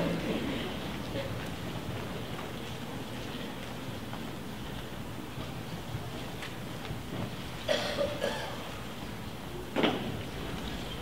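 A grand piano rolls across a wooden stage with dull knocks.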